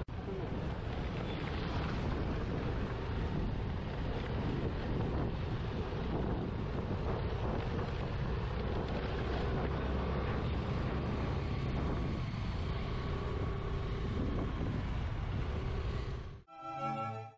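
A motorcycle engine hums steadily up close as it rides along.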